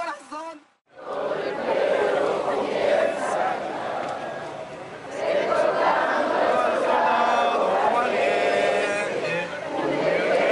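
A large crowd outdoors chants together.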